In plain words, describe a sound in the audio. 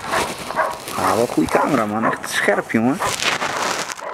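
A German Shepherd barks.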